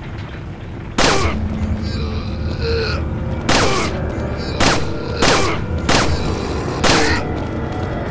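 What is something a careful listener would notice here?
A pistol fires sharp shots one after another.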